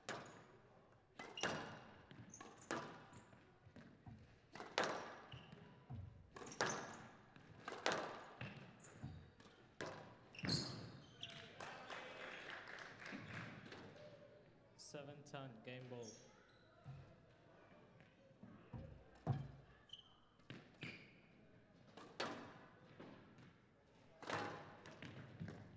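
Sports shoes squeak on the court floor.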